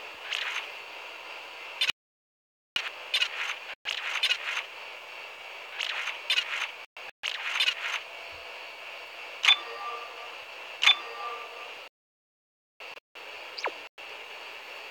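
Short electronic chimes and beeps sound.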